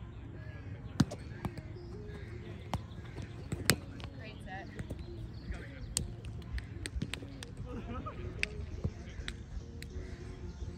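A ball smacks against a small net and is slapped by hands.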